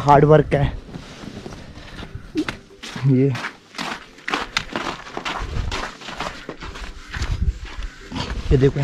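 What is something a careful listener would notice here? Footsteps crunch on snow and dirt.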